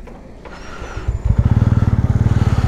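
A motorcycle engine throbs loudly as it speeds up.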